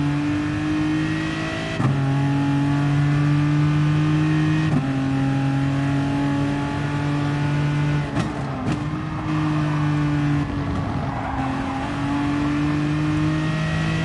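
A racing car engine roars at high revs, dropping briefly with each gear change.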